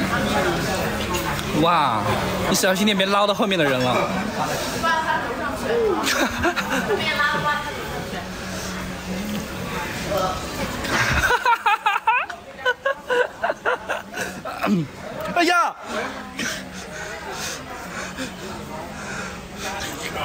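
A young man talks and laughs excitedly nearby.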